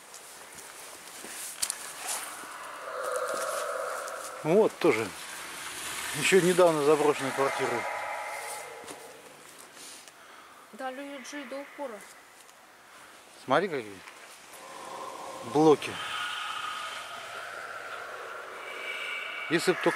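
Footsteps crunch through dry twigs and undergrowth.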